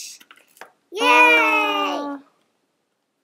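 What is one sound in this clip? A young child squeals loudly with delight.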